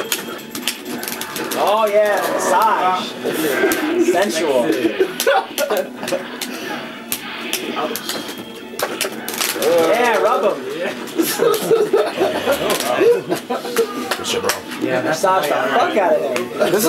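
Punches and kicks from a fighting video game land with sharp smacks through a television speaker.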